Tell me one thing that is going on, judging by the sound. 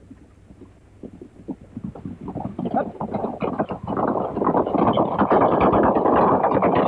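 Horses gallop over hard ground, their hooves thudding louder as they draw near.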